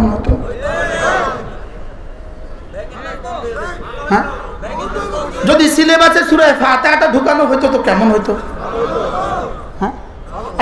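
A middle-aged man preaches with animation into a microphone, heard through loudspeakers, his voice rising to loud calls.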